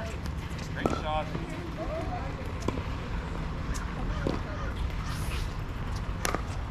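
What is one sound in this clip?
Paddles hit a ball with sharp pops.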